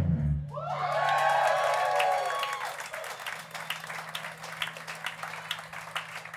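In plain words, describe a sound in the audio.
Electric guitars play loudly through amplifiers.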